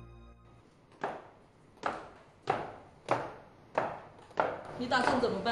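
Footsteps tap down wooden stairs.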